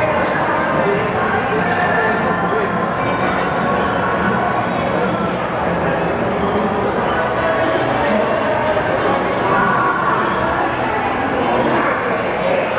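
Many voices murmur steadily in a large echoing hall.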